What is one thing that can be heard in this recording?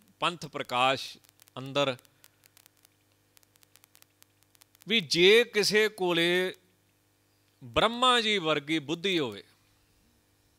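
A man speaks calmly into a microphone in short phrases.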